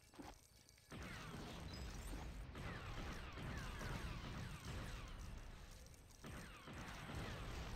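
Video game coins burst out and jingle as they are collected.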